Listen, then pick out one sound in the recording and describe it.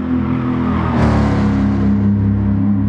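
A car engine rises in pitch as it accelerates away.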